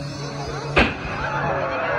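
A firework bursts with a loud bang.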